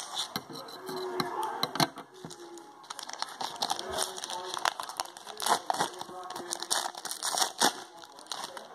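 A plastic wrapper crinkles and rustles in someone's hands.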